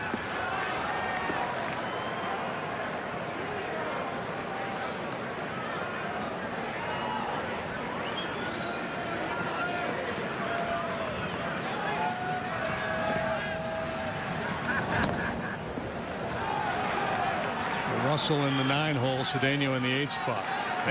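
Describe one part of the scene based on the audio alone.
A sparse crowd murmurs in an open-air stadium.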